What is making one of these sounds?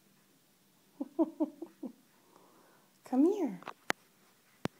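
A small puppy whines and yelps in high, wavering cries.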